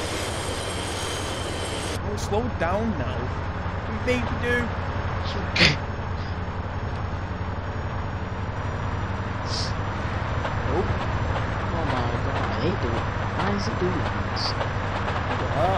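A diesel train engine rumbles steadily along the tracks.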